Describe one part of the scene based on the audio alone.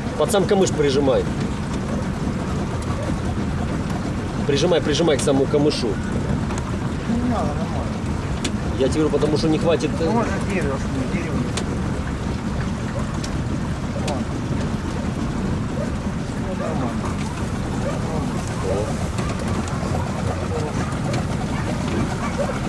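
A boat motor hums steadily.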